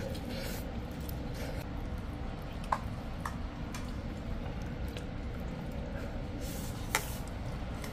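Chopsticks and a spoon clink against a bowl.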